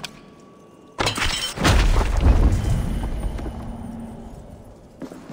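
Heavy wooden debris crashes down with a deep rumble.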